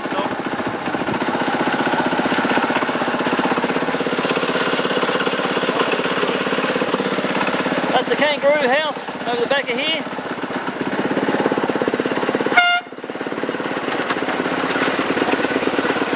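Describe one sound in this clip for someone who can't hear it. A small train clatters steadily along rails.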